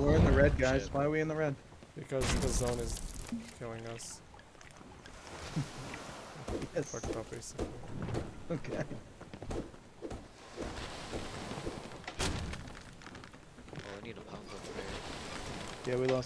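Waves wash against a wooden ship.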